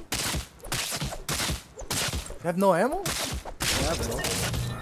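A video game pickaxe strikes metal in sharp, repeated hits.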